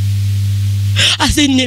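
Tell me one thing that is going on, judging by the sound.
A young woman speaks emotionally into a microphone.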